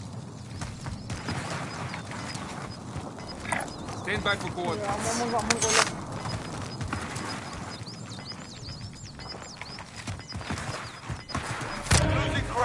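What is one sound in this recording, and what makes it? Footsteps run over dry ground and grass.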